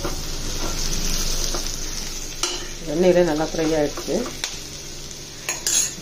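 A metal spoon scrapes and stirs food in a pan.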